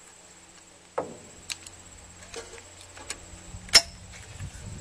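Shells click into a shotgun as it is loaded.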